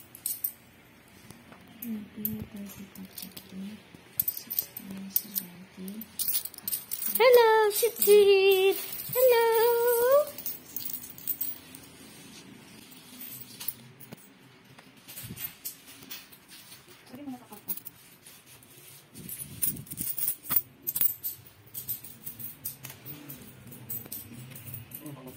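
Coins clink and jingle as hands sift through them.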